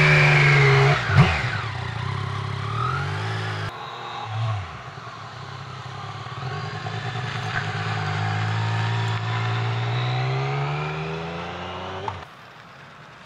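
A motorcycle passes by and fades into the distance.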